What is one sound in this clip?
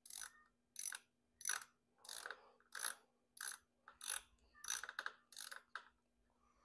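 A hand tool clicks in short, regular bursts.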